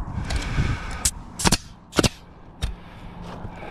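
A nail gun fires sharply several times.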